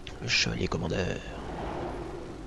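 A magic spell bursts with a loud, crackling whoosh.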